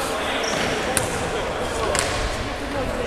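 A ball thuds on the floor in a large echoing hall.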